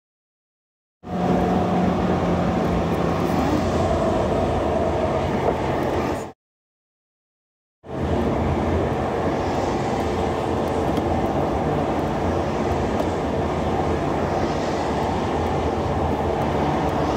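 A car engine drones steadily.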